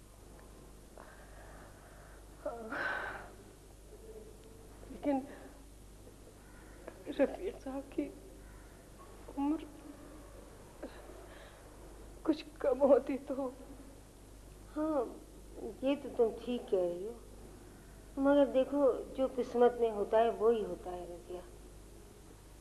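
A middle-aged woman speaks softly in a tearful, halting voice.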